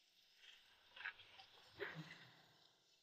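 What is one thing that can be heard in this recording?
A man sets small objects down on a wooden table with light knocks.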